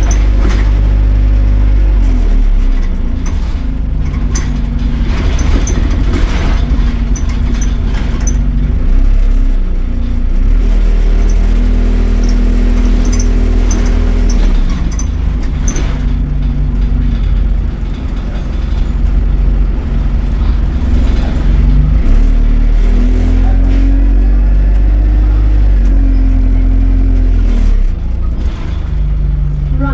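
A bus engine rumbles and hums steadily, rising and falling in pitch as the bus moves.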